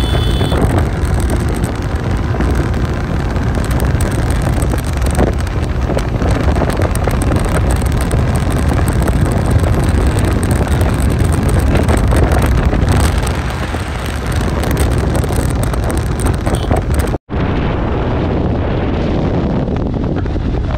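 Wind roars and buffets against the microphone.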